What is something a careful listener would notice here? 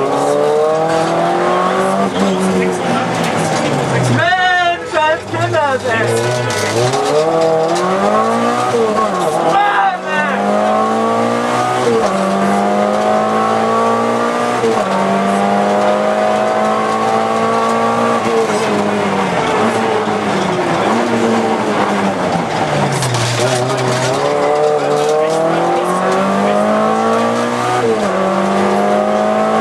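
A rally car engine roars loudly from inside the cabin, revving up and down through the gears.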